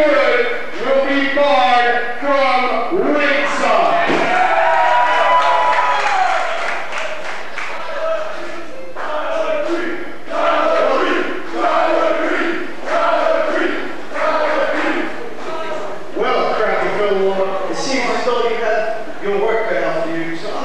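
A man shouts with animation into a microphone.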